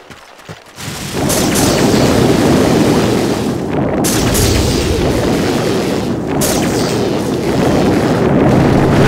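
Rapid gunfire and explosions rattle in a battle.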